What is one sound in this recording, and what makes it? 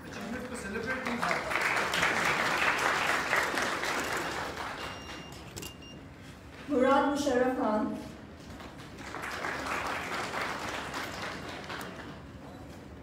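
People clap their hands in a large hall.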